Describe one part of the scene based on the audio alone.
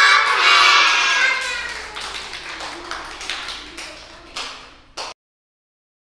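Children clap their hands.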